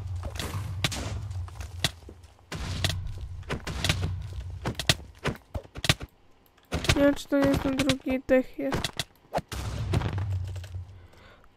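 Explosions boom and rumble in quick succession.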